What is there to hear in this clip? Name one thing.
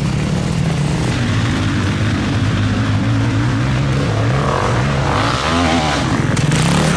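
Knobby tyres spray dirt and gravel.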